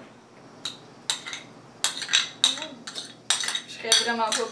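Metal scrapes and clinks against a bowl.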